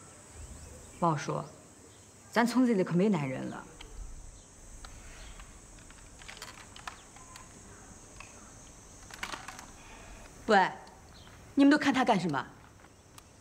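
A woman speaks loudly and sharply nearby.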